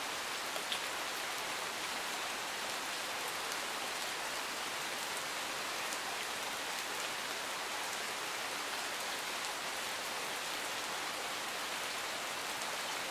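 Steady rain patters on leaves and gravel outdoors.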